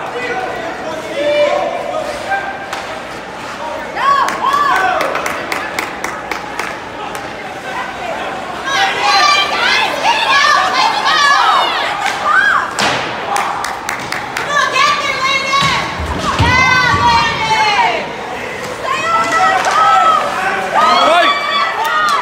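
Spectators shout and cheer loudly in a large echoing rink.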